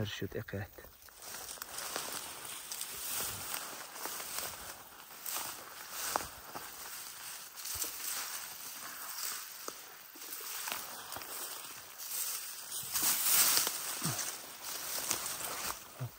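Wind blows across an open hillside and rustles the dry grass.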